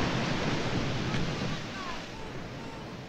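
Waves wash against a rocky shore.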